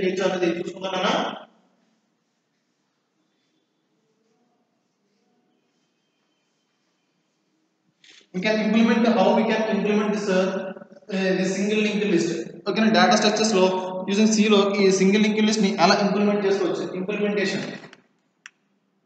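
A man speaks calmly nearby, as if lecturing.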